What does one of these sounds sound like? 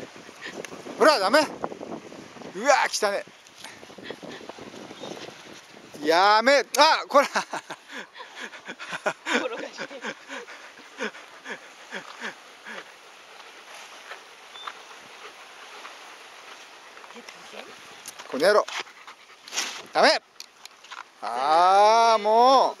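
A dog whines in high, wavering bursts close by.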